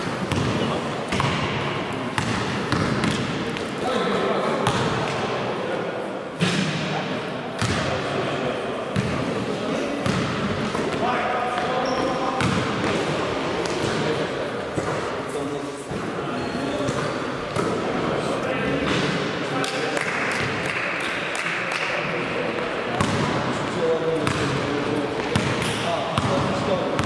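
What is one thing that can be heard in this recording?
Young men shout to one another across a large echoing hall.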